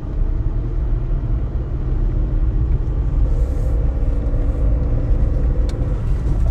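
A vehicle engine rumbles steadily while driving.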